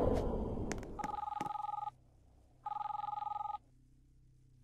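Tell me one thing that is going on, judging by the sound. An electronic phone tone rings in short bursts.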